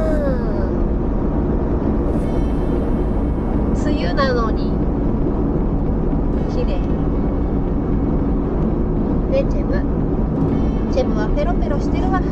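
A car drives steadily along a smooth road, its tyres rumbling from inside the cabin.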